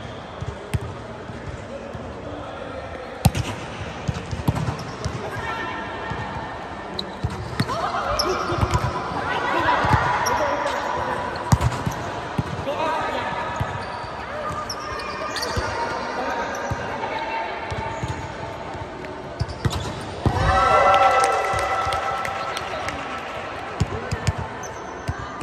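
A volleyball thumps off hands and arms.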